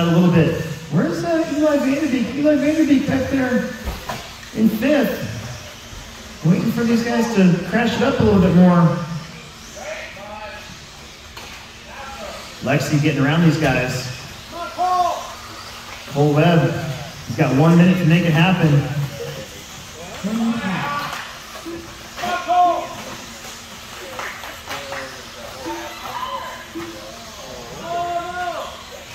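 A man talks casually nearby in a large echoing hall.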